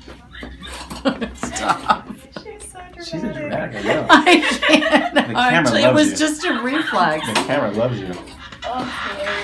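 A middle-aged woman laughs close by.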